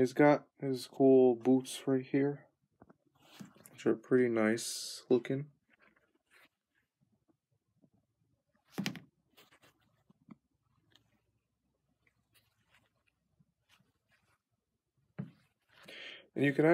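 Hands rub and squeeze a puppet's soft leather boots.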